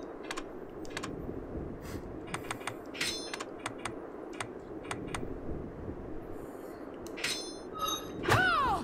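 Short game menu clicks tick quickly, one after another.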